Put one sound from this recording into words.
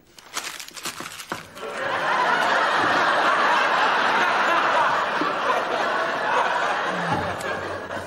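A man giggles quietly to himself.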